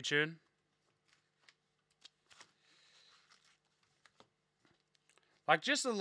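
Cardboard packs rustle and crinkle in hands.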